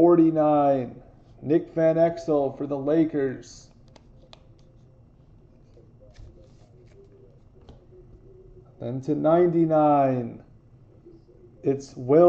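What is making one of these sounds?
Cards rustle and slide between hands.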